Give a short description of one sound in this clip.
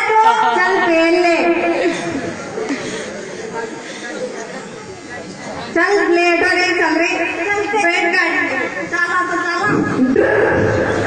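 A man sings loudly through a microphone and loudspeaker.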